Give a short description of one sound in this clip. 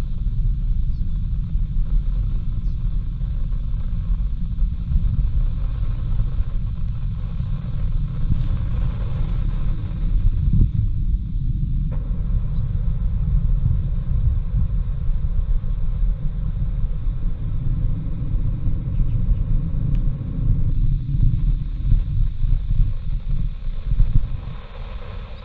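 A distant rocket rumbles with a deep, low roar as it climbs.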